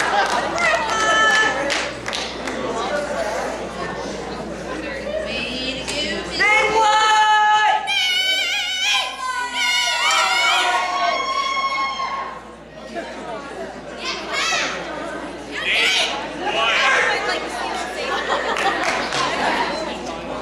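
A crowd cheers and whoops in a large echoing hall.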